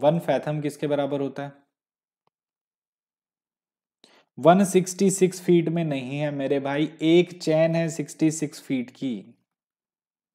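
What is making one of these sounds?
A man speaks calmly and steadily into a close microphone, as if explaining.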